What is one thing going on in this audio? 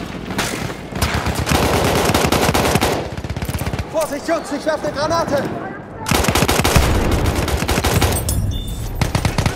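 A rifle fires rapid, loud shots close by.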